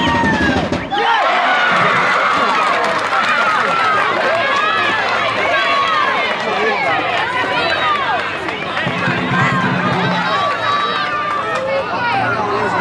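A crowd of spectators cheers and shouts excitedly outdoors.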